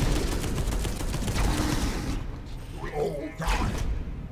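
An explosion booms and crackles with fire.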